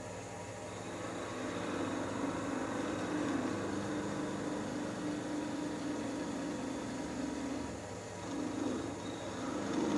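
A tool scrapes against spinning wood.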